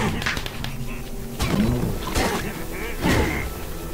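Sword blows strike creatures with sharp hits.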